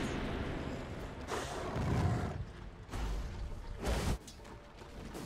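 Fiery spell blasts burst and crackle in a game fight.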